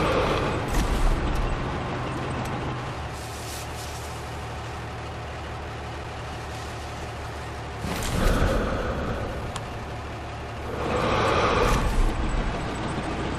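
Footsteps shuffle through dry grass and dirt.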